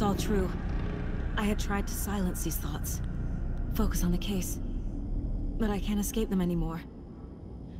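A woman speaks calmly and quietly, close up.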